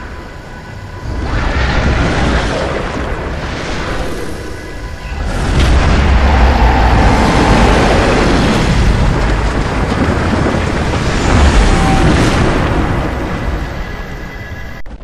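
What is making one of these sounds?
Magic energy whooshes and rumbles loudly.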